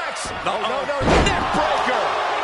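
A body slams hard onto a wrestling mat with a heavy thud.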